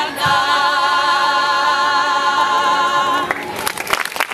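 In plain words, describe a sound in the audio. A group of women sing a long held note together.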